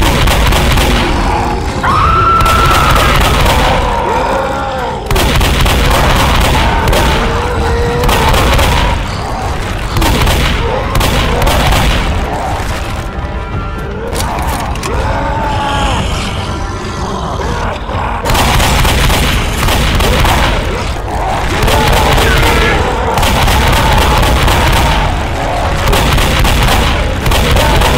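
A shotgun is pumped and reloaded with clicks.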